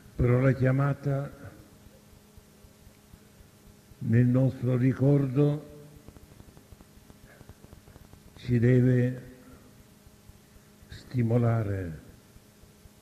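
An elderly man speaks slowly in short phrases, with long pauses.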